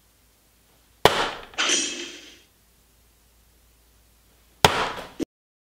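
A dart thuds into an electronic dartboard.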